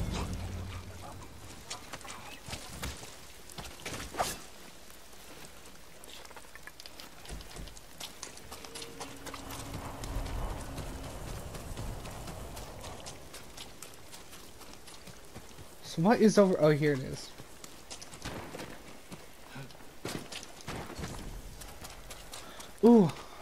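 Footsteps rustle through grass and undergrowth.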